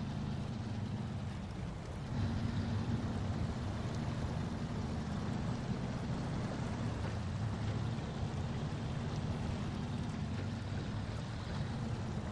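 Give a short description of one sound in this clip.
Tyres crunch over rocky ground.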